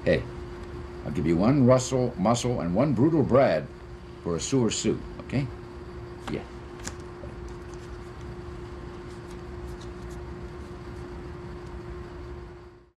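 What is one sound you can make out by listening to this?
Paper crinkles softly in a man's hands.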